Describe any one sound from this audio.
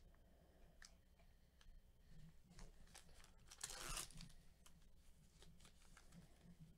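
Gloved hands crinkle and tear open a foil card wrapper close by.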